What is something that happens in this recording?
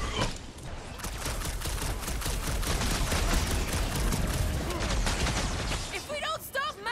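Fast punches and energy blasts thud and crackle in a fight.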